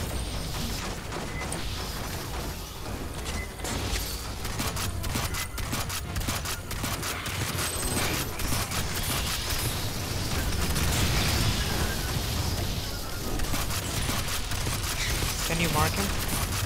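A flamethrower roars loudly.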